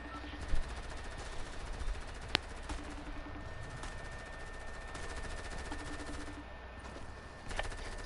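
A pickaxe swings and strikes with short thuds.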